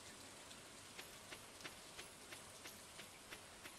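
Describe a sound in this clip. Footsteps tap quickly and evenly.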